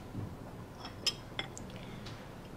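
A porcelain cup clinks against a saucer.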